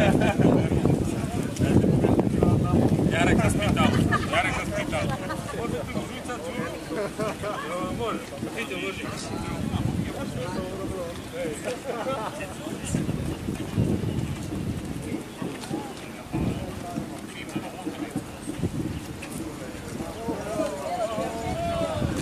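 Footsteps of many people shuffle on pavement.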